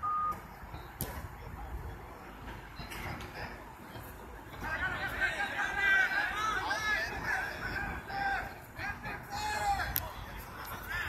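A football is kicked with a sharp thud.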